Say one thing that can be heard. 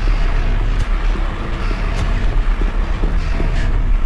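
Footsteps clank on a metal grating.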